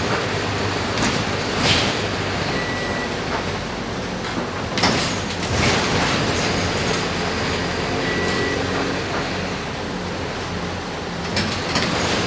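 A bus rattles and clatters over the road.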